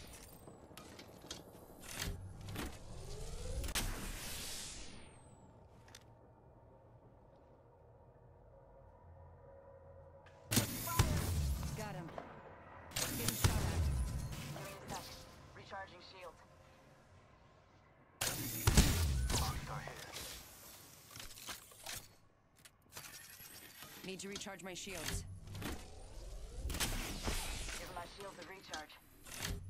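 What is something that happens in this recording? A video game shield cell charges with a whirring hum.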